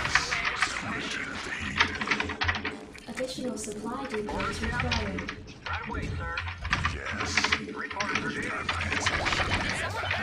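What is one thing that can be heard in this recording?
Game gunfire crackles in rapid bursts.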